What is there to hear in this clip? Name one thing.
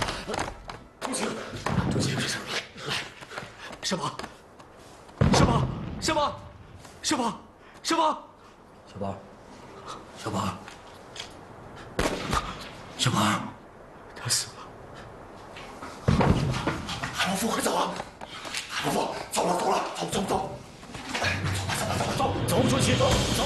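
A man calls out urgently, close by.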